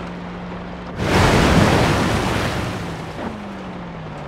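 Water splashes loudly as a vehicle drives through a stream.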